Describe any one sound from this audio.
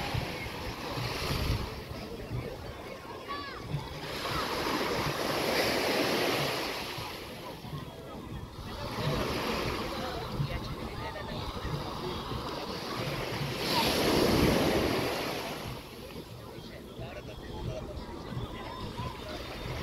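Distant voices of beachgoers murmur in the background.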